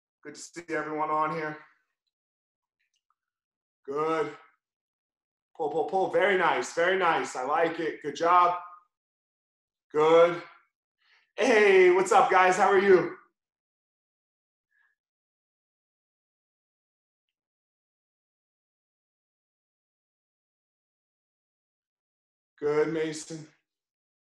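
A man speaks calmly through an online call microphone, in short bursts with pauses.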